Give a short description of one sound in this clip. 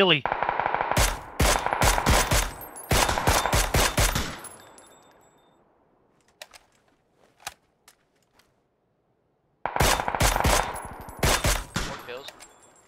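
Rifle shots crack in quick bursts with echoes.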